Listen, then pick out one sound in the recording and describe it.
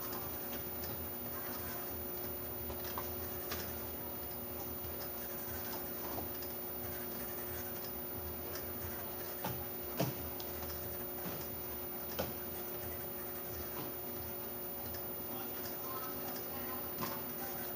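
A packing machine hums steadily.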